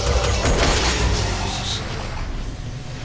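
Sharp combat impacts and blasts ring out.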